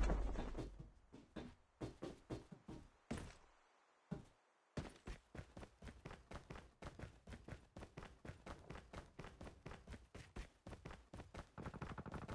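Quick footsteps run in a video game.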